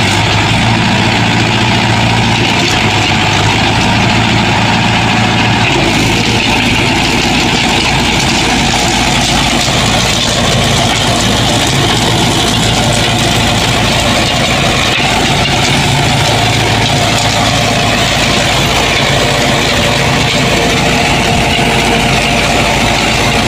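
A rotary tiller churns through soil with a rough rattling roar.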